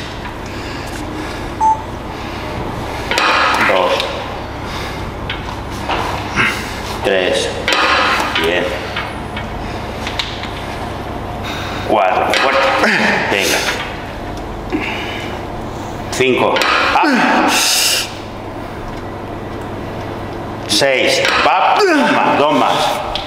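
A young man grunts and breathes hard with effort.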